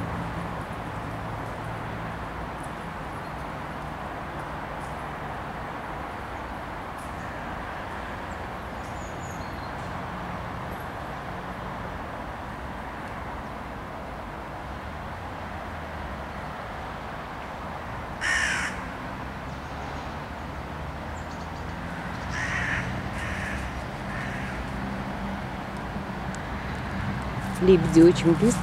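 A light wind blows steadily outdoors.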